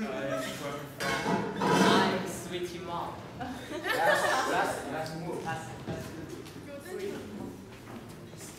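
Teenagers talk and laugh nearby.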